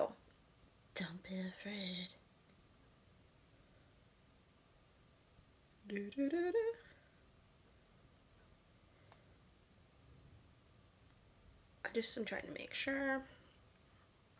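A young woman speaks calmly in short phrases close to a microphone.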